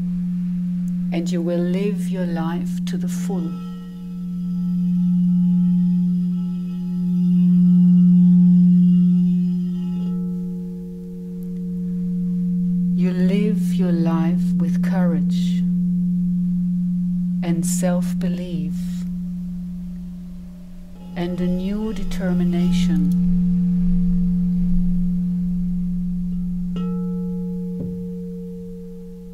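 Crystal singing bowls ring with a steady, humming drone.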